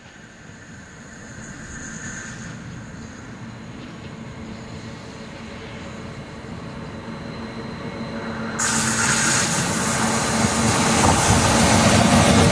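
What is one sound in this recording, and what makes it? An electric train approaches along the track, growing steadily louder.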